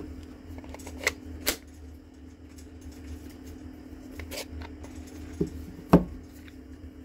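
A plastic battery adapter clicks and snaps onto a battery pack.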